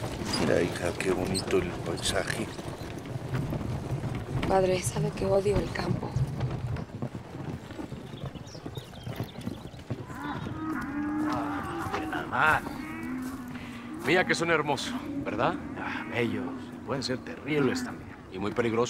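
Cattle low in the open.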